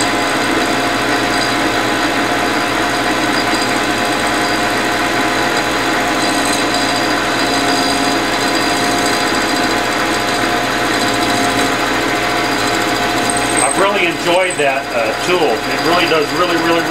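A metal lathe hums and whirs steadily as its chuck spins.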